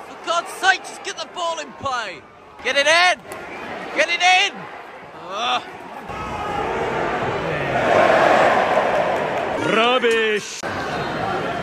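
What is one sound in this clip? A large crowd chants loudly close by in an open stadium.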